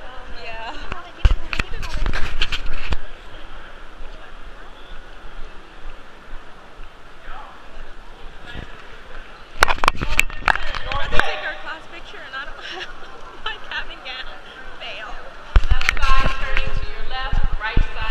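A young woman talks with animation close to the microphone, in a large echoing hall.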